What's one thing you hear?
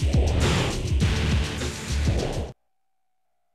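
Loud electronic game music plays and cuts off abruptly.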